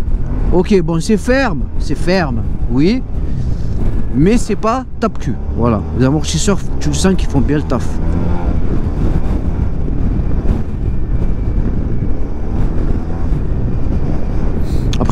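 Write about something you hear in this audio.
A motor scooter engine hums steadily while riding.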